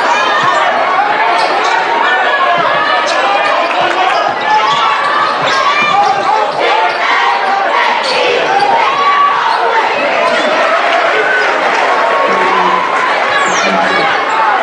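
A large crowd cheers and chatters in an echoing gym.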